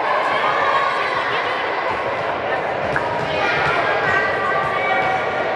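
Many girls and women chatter and call out in a large echoing hall.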